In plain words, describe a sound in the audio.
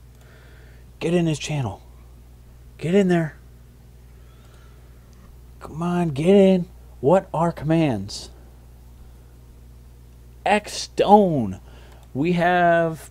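A young man talks with animation into a microphone, in short bursts.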